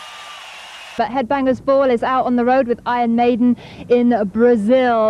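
A young woman talks with animation into a microphone close by.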